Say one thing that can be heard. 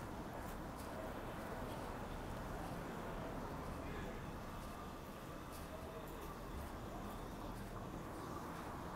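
A car engine idles and rolls slowly past on a street.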